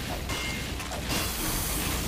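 A sentry gun fires rapid shots.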